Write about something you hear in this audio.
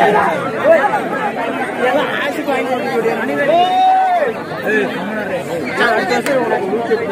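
A large crowd of men, women and children chatters and calls out close by outdoors.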